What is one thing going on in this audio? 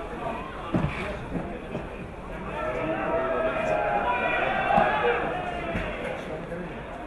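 A crowd of spectators cheers outdoors.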